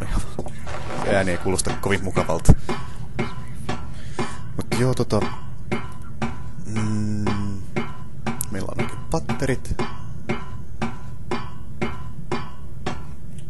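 Footsteps clank on metal ladder rungs in a steady rhythm.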